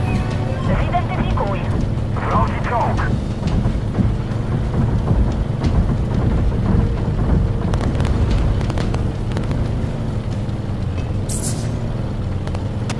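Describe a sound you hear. Tank tracks clank and rattle on the road.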